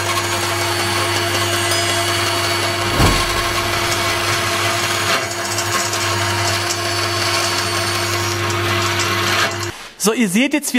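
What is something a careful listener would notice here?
A band saw hums steadily as it cuts through a board.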